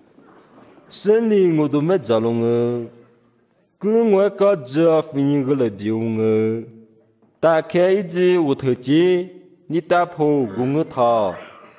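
A man chants in a clear, strong voice, close by, with short pauses.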